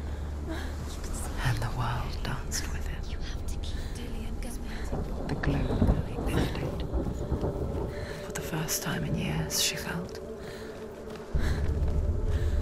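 Waves wash onto a shore.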